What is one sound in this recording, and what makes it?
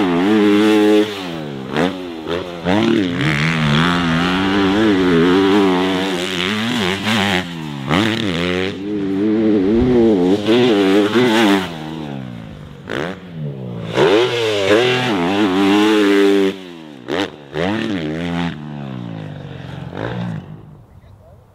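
A dirt bike engine revs hard, rising and falling in pitch.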